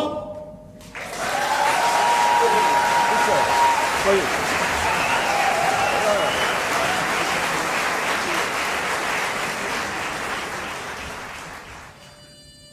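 An audience applauds loudly and then fades.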